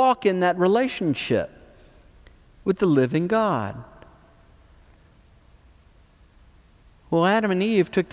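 An older man speaks calmly and clearly into a close microphone, with pauses between phrases.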